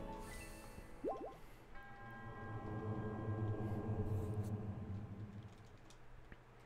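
A shimmering magical chime rings out, swells and fades away.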